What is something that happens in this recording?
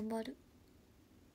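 A young woman close to the microphone makes a short voiced sound.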